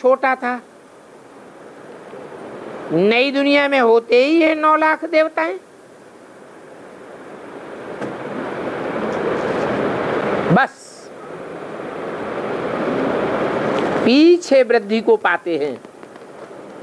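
An elderly man recites in a slow, sing-song voice nearby.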